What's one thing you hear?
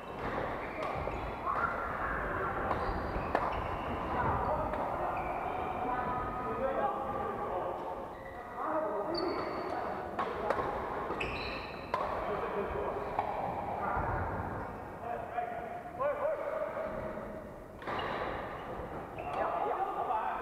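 Several men and women chatter and call out around the hall.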